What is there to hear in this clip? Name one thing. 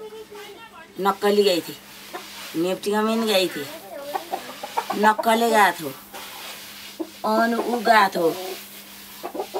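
An elderly woman speaks calmly and with feeling, close by.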